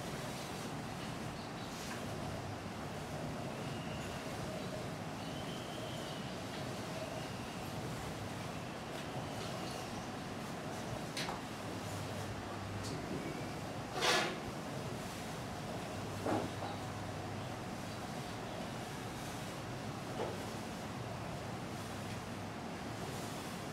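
Milk squirts rhythmically into a metal pail.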